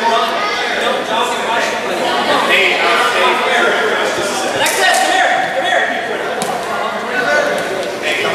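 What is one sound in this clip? A ball thuds as a child kicks it across the floor.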